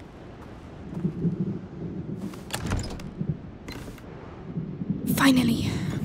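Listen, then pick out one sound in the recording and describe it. Hands rummage through a wooden crate with knocks and rustles.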